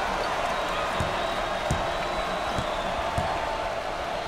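A basketball bounces on a hardwood floor a few times.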